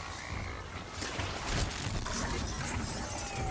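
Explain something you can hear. Metal clanks and crashes as a fight breaks out.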